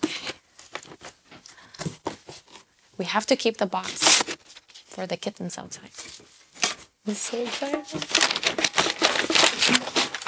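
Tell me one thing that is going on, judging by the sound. Paper packing crinkles and rustles.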